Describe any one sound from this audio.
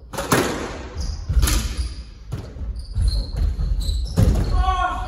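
Court shoes squeak on a wooden floor.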